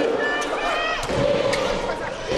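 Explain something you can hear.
A volleyball is struck hard with a thud.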